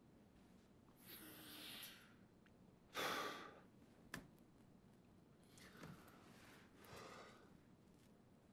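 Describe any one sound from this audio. A young man sighs and breathes out heavily, close by.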